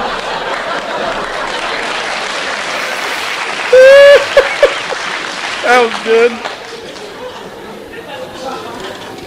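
A man laughs loudly and exclaims close to a microphone.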